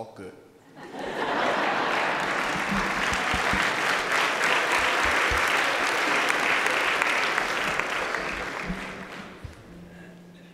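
An audience claps and cheers loudly, then the applause fades.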